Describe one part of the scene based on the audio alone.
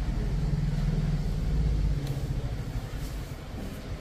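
Hands rub and scratch through hair close by.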